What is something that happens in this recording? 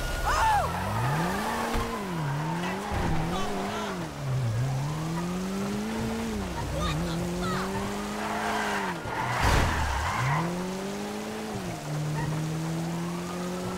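A car engine revs up and down as it drives away.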